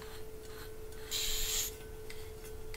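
Gas hisses briefly from a can's valve.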